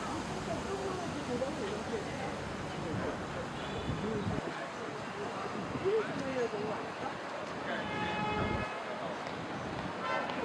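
A crowd of people chatter in the distance outdoors.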